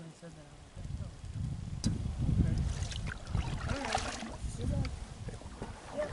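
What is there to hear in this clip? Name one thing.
A paddle splashes softly in water.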